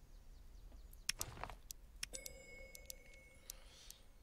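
Short game menu clicks and blips sound as gear is swapped.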